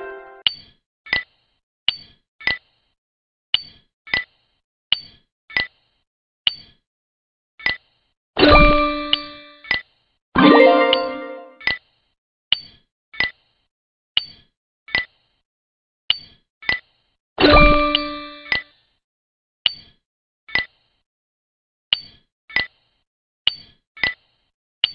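Short, crisp clicks sound as game pieces drop into place.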